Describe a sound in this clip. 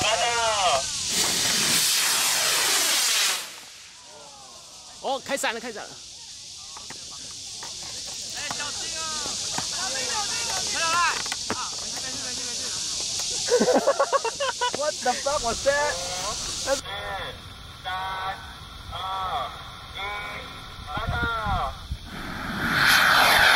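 People shout and talk excitedly outdoors.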